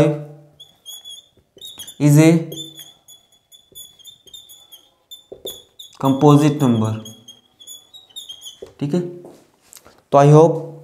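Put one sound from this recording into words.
A man explains calmly and clearly, close by.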